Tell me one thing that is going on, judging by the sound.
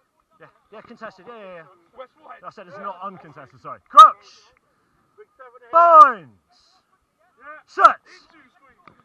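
Men shout loudly and close by.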